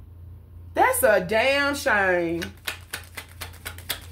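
Playing cards are shuffled and tapped by hand.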